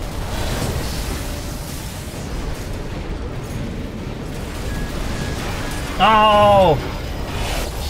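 Heavy gunfire rattles and booms in a fierce battle.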